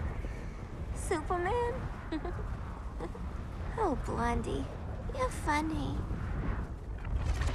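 A young woman moans and gasps breathlessly.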